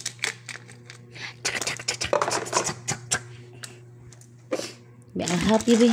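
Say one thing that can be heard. Plastic toy pieces clatter and rustle.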